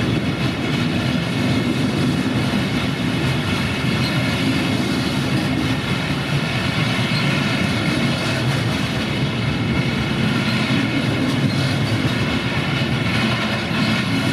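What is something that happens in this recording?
A long freight train rumbles past close by, its wheels clattering steadily over the rails.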